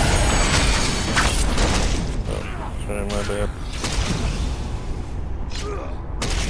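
Magical blasts and impacts ring out repeatedly.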